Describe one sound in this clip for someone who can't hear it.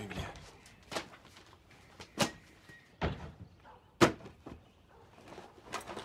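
Objects knock and rustle as they are packed into a bag.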